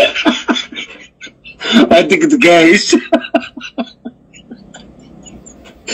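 A man laughs through a phone's loudspeaker.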